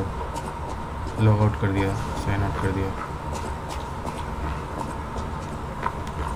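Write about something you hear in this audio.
Footsteps tap on cobblestones.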